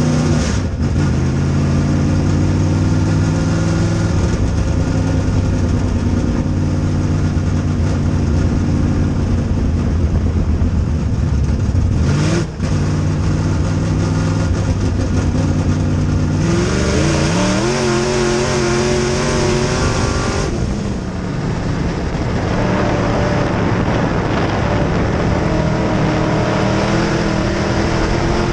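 Tyres rumble over a dirt track.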